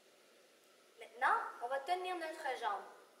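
A young girl speaks clearly and calmly, close by, in a room that echoes slightly.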